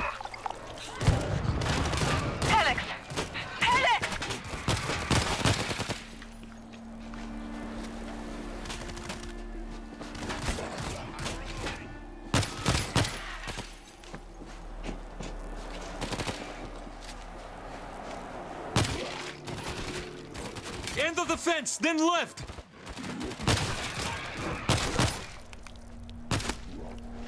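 Rifles fire in sharp bursts of gunshots.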